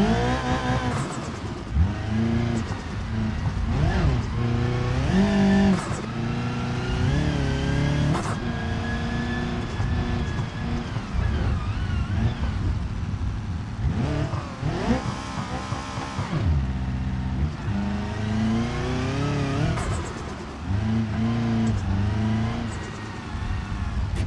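Tyres crunch and skid on gravel.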